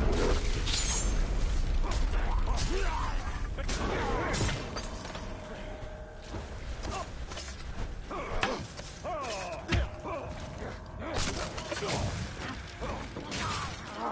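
Creatures grunt and roar as they are struck.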